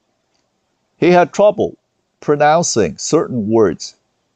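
A man reads aloud calmly, close to a microphone.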